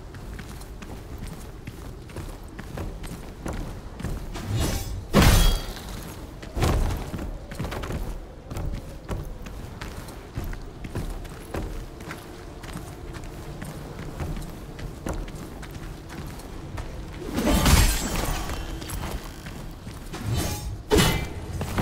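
Footsteps thud on dirt as a man runs.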